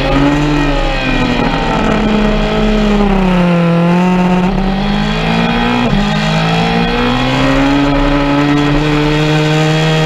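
A motorcycle engine roars at high revs, its pitch falling and rising as it slows and speeds up.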